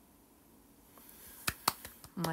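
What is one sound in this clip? A hand bumps and rubs against a phone microphone.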